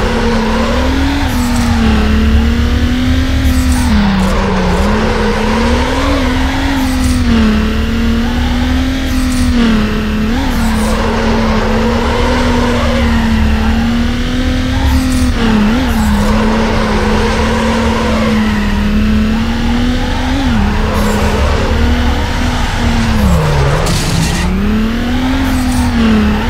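A car engine roars and revs up and down throughout.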